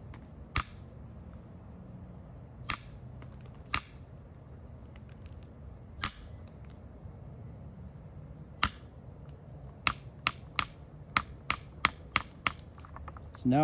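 Sharp stone flakes snap and click as an antler tip presses them off.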